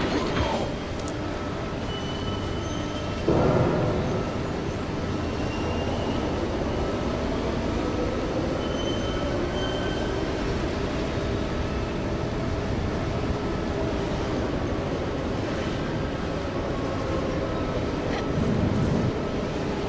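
Quick footsteps run on a metal floor.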